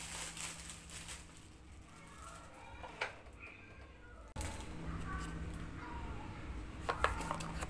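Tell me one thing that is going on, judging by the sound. A cardboard box scrapes and taps as it is handled.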